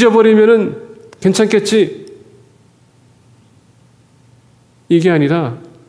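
A man speaks calmly through a microphone in an echoing hall, with pauses.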